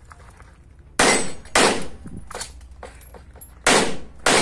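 Gunshots crack loudly, one after another, outdoors.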